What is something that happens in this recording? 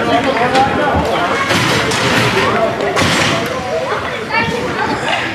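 Hockey sticks clack against the ice.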